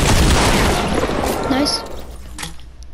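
Gunshots burst loudly in quick succession.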